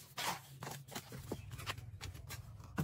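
A trowel scrapes and scoops wet cement in a plastic tub.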